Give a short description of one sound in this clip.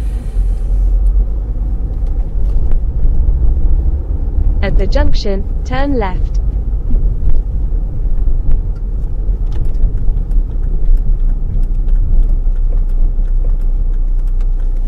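A car engine hums low and steadily while driving.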